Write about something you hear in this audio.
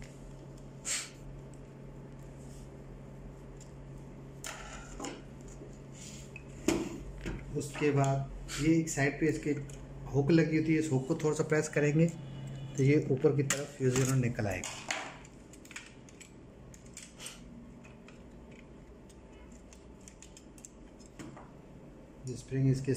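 Plastic parts click and clatter as they are handled.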